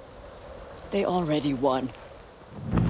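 An older woman speaks quietly and firmly.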